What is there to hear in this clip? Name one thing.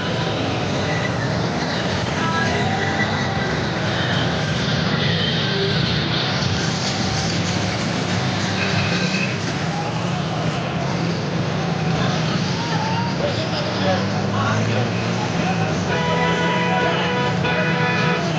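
A crowd of men shouts and cheers loudly outdoors.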